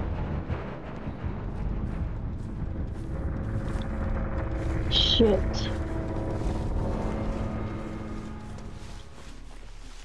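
Footsteps crunch over dry leaves.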